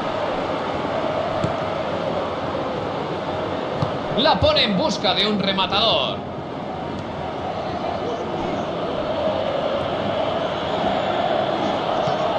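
A large stadium crowd murmurs and roars steadily all around.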